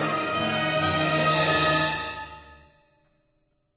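An orchestra plays a final chord that rings out and fades in a large hall.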